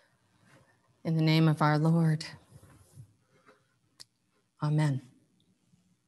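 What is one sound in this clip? A middle-aged woman sings short phrases close to a microphone.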